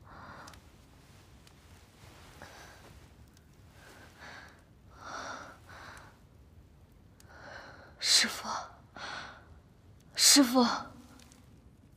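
A young woman gasps and breathes heavily close by.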